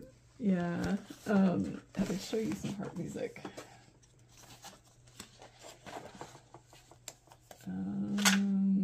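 Paper pages rustle as they are turned and handled.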